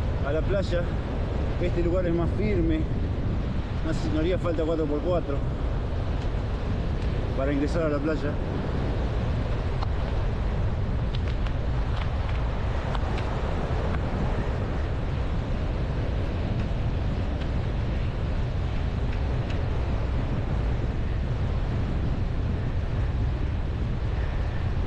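Strong wind buffets and rumbles outdoors.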